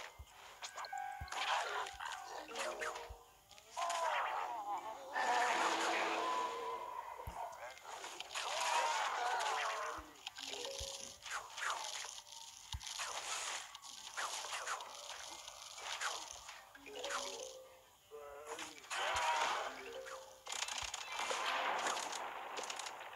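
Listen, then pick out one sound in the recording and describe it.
Cartoon game sound effects pop, splat and chime throughout.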